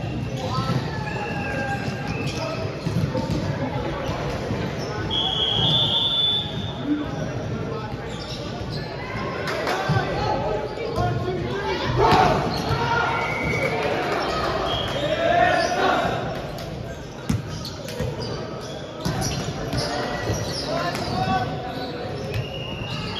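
A volleyball thuds as players hit it.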